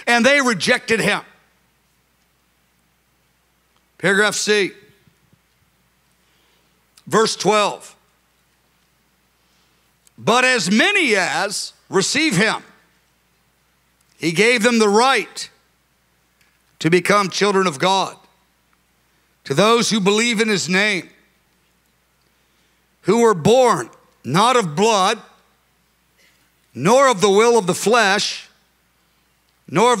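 A middle-aged man speaks slowly and earnestly into a microphone, with long pauses between phrases.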